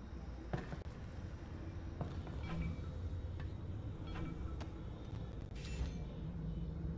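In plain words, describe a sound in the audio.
A small metal item is picked up with a short clink.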